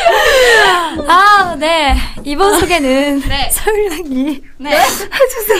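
A young woman talks cheerfully into a microphone.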